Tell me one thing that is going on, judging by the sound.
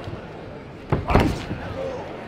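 A boxing glove lands a punch with a sharp thud.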